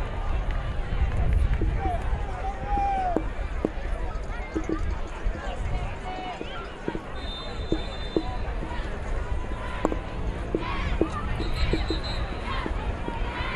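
A crowd murmurs and cheers in an open-air stadium.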